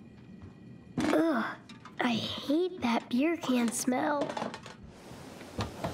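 A young boy speaks with disgust, close by.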